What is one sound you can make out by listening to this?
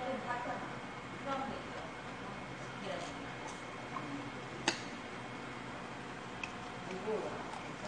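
Chopsticks click against dishes.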